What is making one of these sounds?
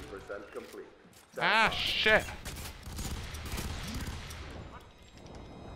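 A rifle fires sharp shots in short bursts.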